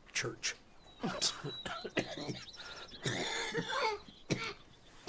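A woman laughs softly nearby.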